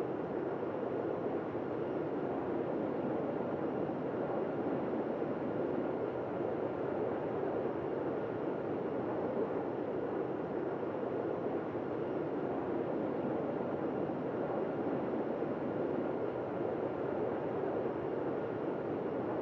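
Jet engines hum with a steady, even roar.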